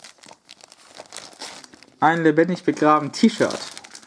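Plastic wrapping crinkles under hands.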